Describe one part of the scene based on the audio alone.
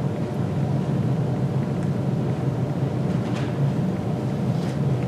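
A middle-aged man speaks steadily into a microphone in an echoing hall.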